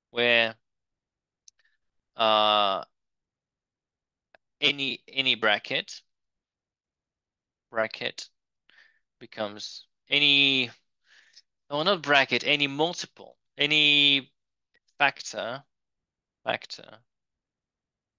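A man speaks calmly and steadily into a microphone, pausing often.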